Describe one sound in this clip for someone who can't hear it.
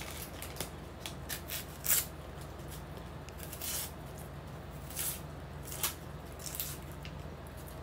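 A knife slices through an onion with soft taps on a wooden board.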